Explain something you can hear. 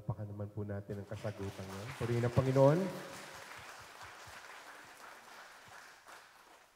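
A crowd of guests cheers loudly.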